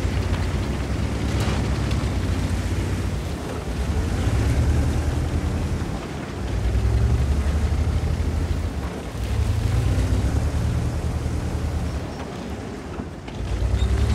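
Tank tracks clatter over rocks.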